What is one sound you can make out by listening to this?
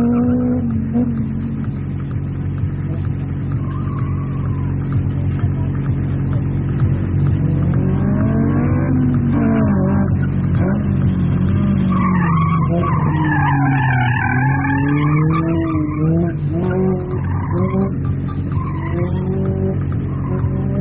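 A car engine revs up and down as the car speeds through turns.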